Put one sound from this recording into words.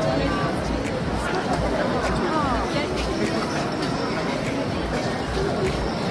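A busy crowd chatters and murmurs outdoors.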